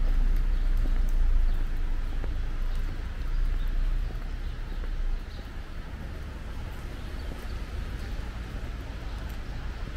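Light rain patters softly on a wet pavement outdoors.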